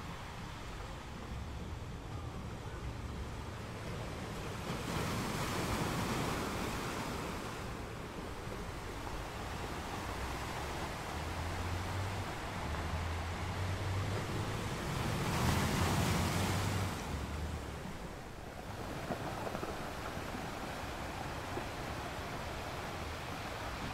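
Ocean waves crash and roar against rocks, swelling and easing in slow surges.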